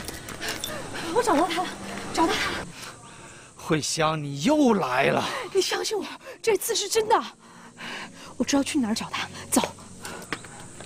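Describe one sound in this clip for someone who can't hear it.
A young woman speaks urgently nearby.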